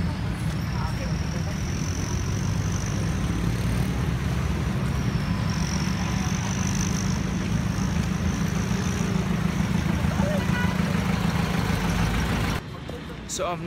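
Traffic rumbles steadily on a busy street outdoors.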